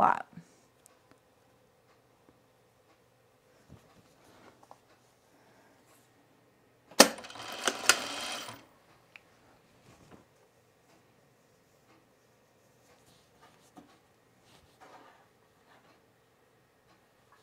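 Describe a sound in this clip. Cloth rustles softly as it is handled.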